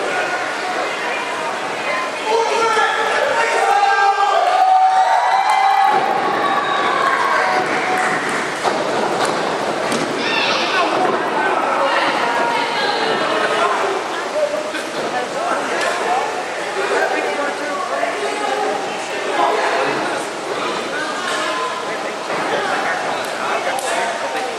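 A crowd of children and adults shouts and cheers in a large echoing hall.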